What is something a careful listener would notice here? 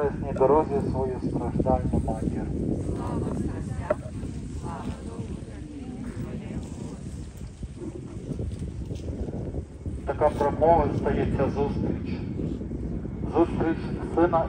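A crowd of men and women pray aloud together outdoors.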